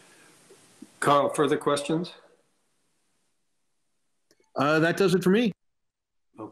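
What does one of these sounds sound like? An older man speaks briefly over an online call.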